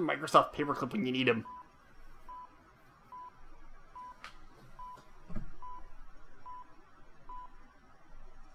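A computer terminal gives short, even beeps at a steady pace.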